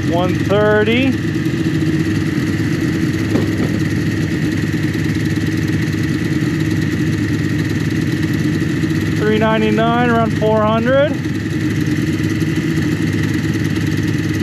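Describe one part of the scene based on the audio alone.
A snowmobile engine idles steadily close by.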